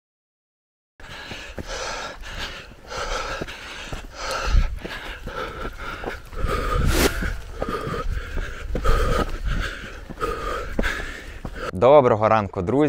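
Footsteps thud quickly on a dirt trail.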